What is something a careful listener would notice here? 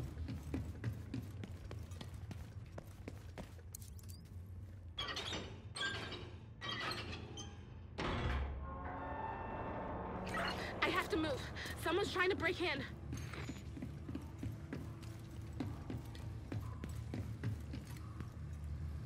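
Footsteps thud on hard ground and metal grating.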